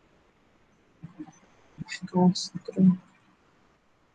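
A young woman speaks briefly and calmly over an online call.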